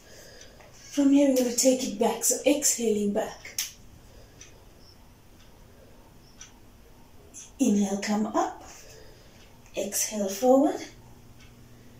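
A woman speaks calmly, giving instructions in short phrases.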